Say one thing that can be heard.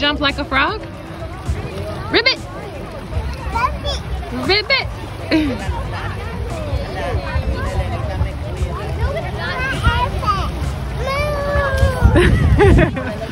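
Young children shout and squeal playfully nearby.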